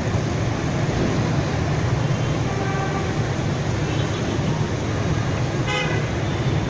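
Dense motorbike and car traffic rumbles steadily past outdoors.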